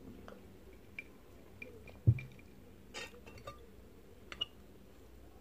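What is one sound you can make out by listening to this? A metal fork clinks against a glass dish.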